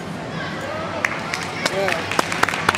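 People clap and cheer.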